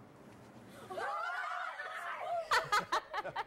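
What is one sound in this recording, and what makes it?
Children shriek and shout with excitement.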